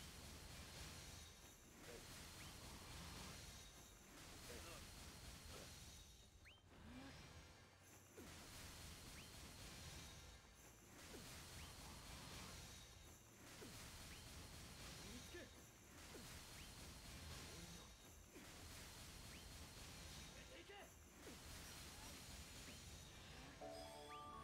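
Sword slashes whoosh and clang again and again.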